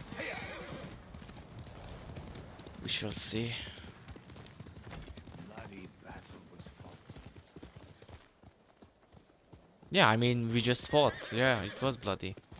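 A horse gallops, hooves thudding on the ground.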